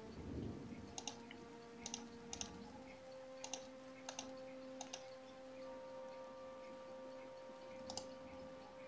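Soft menu clicks sound now and then.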